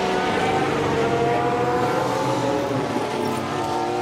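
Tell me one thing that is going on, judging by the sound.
Several racing cars roar past close together.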